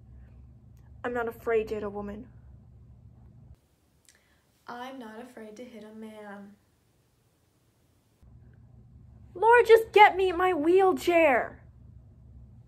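A young woman speaks with feeling, close to a microphone.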